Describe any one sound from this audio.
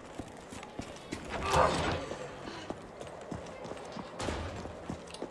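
Footsteps run on hard pavement.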